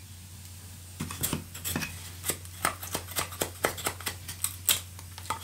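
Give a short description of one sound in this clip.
A blade splits kindling with quick, sharp knocks.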